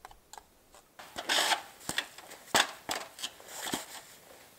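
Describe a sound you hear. Boots crunch through snow.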